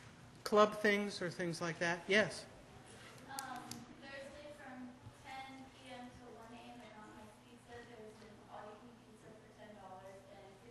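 A middle-aged woman speaks loudly and with animation through a microphone in a large echoing hall.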